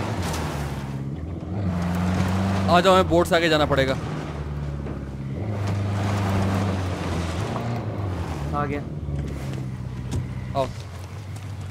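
A vehicle engine rumbles steadily as it drives over rough ground.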